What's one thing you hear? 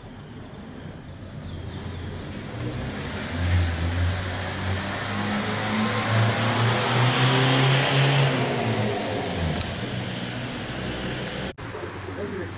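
A small aircraft engine drones overhead, swelling and then fading away.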